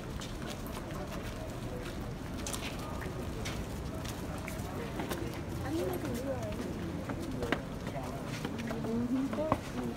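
Footsteps scuff on stone steps.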